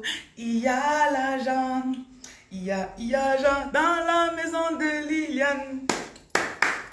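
A young woman sings loudly and cheerfully close by.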